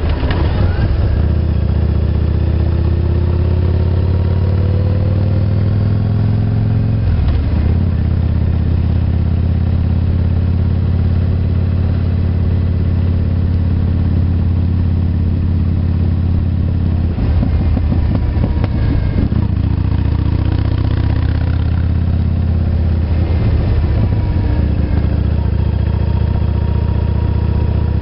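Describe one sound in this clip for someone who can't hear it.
A motorcycle engine hums loudly and steadily up close, rising and falling as it speeds up and slows.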